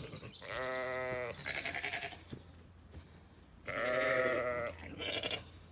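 A cow moos loudly nearby.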